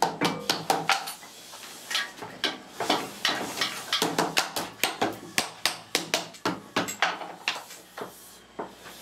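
Wooden strips knock and clatter against a workbench in quick, sharp taps.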